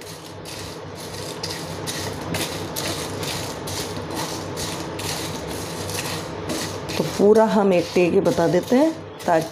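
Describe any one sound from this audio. A spatula scrapes and stirs dry spices in a frying pan, in quick repeated strokes.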